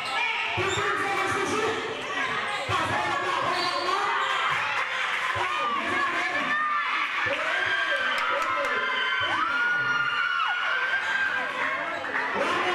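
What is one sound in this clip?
A basketball thumps as it bounces on a court floor.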